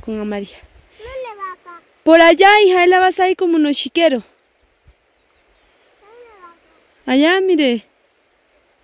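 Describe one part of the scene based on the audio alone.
A young child calls out in a high, sing-song voice.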